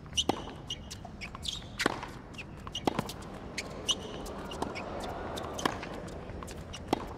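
Shoes squeak sharply on a hard court.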